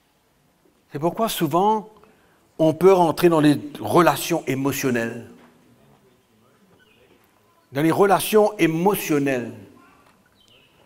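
An older man speaks emphatically into a microphone, in short bursts with pauses.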